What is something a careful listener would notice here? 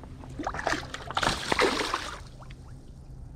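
A fish splashes as it drops into shallow water.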